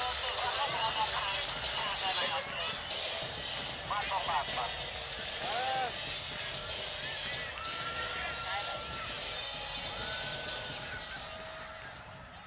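Young men shout and cheer nearby outdoors.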